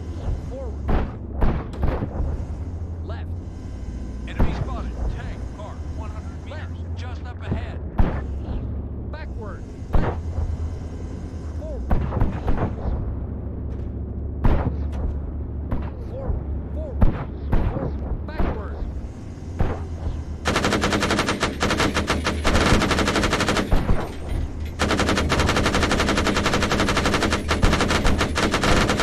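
Heavy cannons fire loud booming shots.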